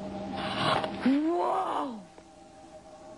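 A young boy gasps in surprise.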